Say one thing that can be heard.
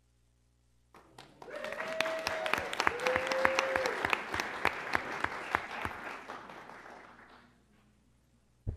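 A crowd applauds and cheers in a large room.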